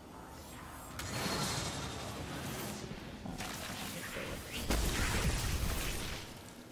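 Loud blasts and bursts of gunfire boom and crackle.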